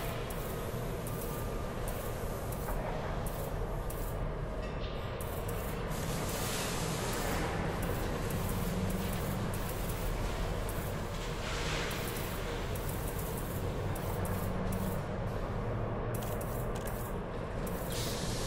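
A spaceship's engine hums low and steady.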